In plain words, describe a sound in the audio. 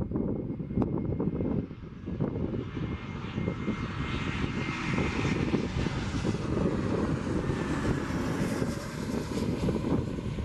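The jet engines of a Boeing 737-800 whine and roar as they spool up to takeoff power.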